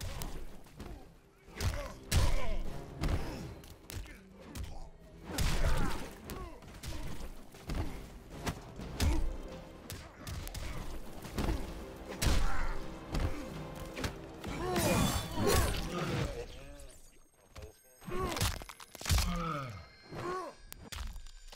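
Heavy punches and kicks land with loud thuds and smacks.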